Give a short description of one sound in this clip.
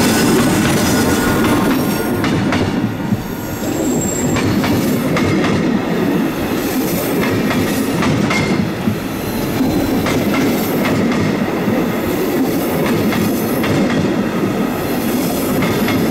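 A passenger train's wheels clatter over the rail joints as it rolls past close by.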